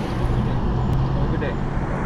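A man in uniform speaks close by outside the car window.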